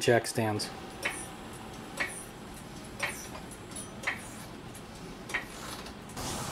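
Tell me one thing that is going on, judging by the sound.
A floor jack handle pumps with soft clicks.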